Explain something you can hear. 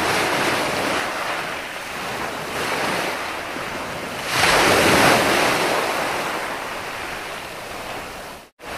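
Ocean waves break and wash up onto the shore in surges.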